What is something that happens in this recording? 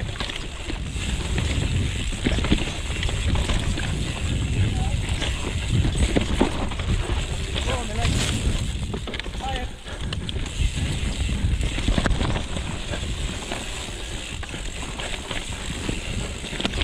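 Wind rumbles loudly over a microphone outdoors.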